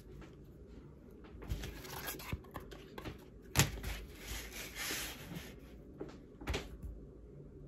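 Leather pieces rustle and slap as they are moved.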